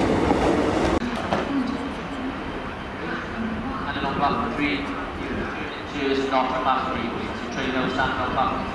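A steam locomotive hisses and chuffs as it approaches slowly.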